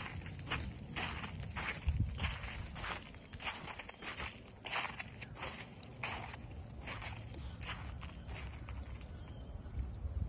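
Footsteps crunch on thin snow.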